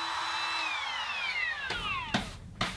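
A power tool winds down to a stop.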